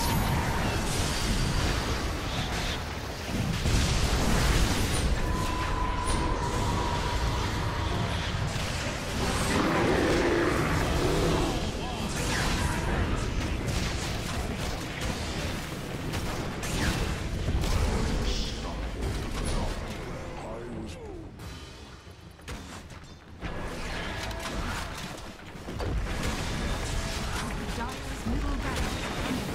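Magical blasts, zaps and clashes crackle in a busy video game battle.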